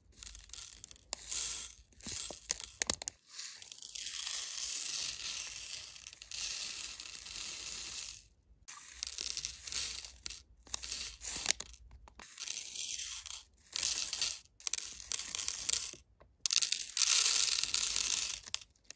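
Small plastic gems pour and rattle onto a plastic tray.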